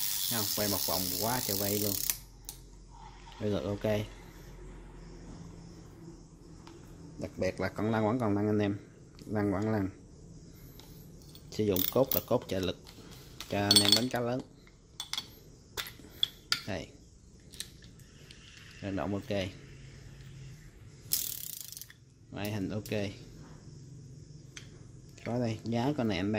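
A fishing reel clicks and rattles as it is handled.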